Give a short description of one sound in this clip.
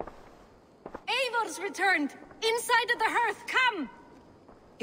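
A woman calls out loudly with excitement.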